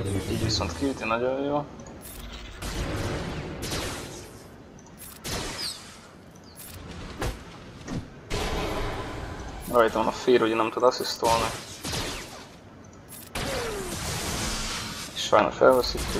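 Game battle effects zap and clash.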